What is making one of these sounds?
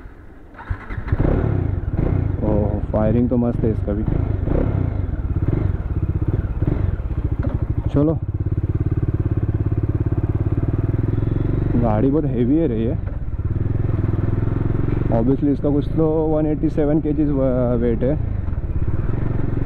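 A motorcycle engine revs up repeatedly and rumbles close by.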